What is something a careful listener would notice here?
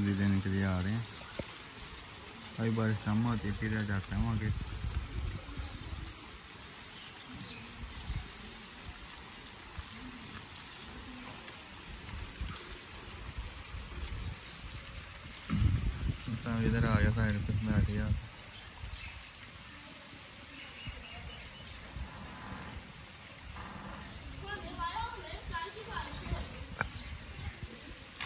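Light rain patters on wet pavement outdoors.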